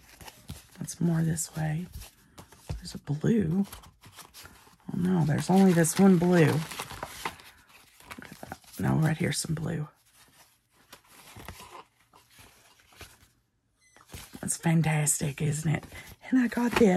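Paper cards rustle and shuffle as they are handled.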